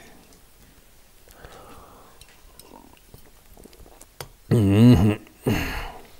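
An elderly man sips from a cup.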